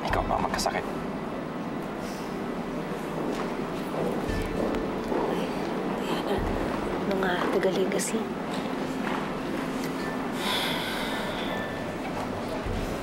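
A woman speaks softly and earnestly, close by.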